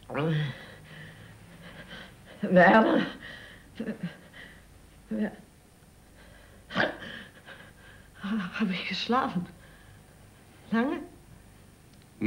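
An elderly man speaks calmly and quietly.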